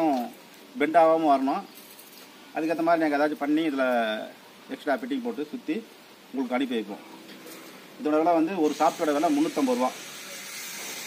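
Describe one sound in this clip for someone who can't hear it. An elderly man speaks calmly and clearly, close by.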